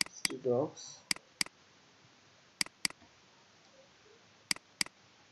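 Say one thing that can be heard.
A computer mouse clicks in quick double clicks.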